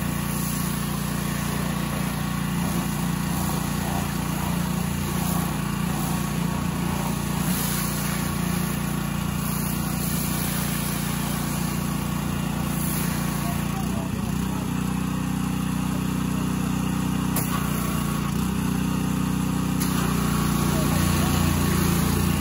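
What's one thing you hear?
A pressure washer sprays water hard against a car.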